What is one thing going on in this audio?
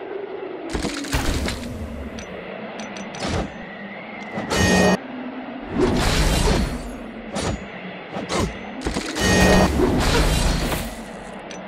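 Fighting sounds with blows and spell bursts clash loudly.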